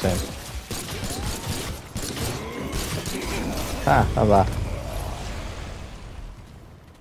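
Heavy melee blows thud and crack in a fight.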